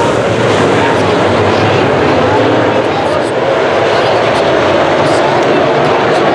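Racing car engines roar loudly and steadily nearby.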